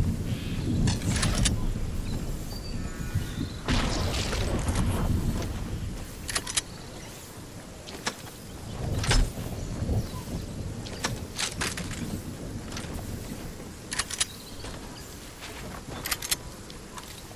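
Short chiming clicks sound as items are picked up in a game.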